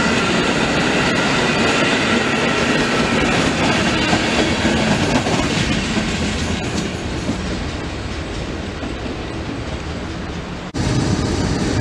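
A passenger train rushes past close by, its wheels rumbling and clattering on the rails.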